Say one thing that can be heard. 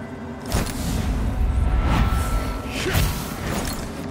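A magic blast bursts with a sharp crackling whoosh.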